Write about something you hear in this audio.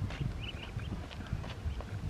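Ducklings cheep nearby.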